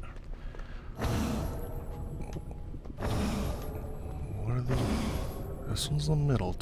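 A magical spell crackles and whooshes in bursts.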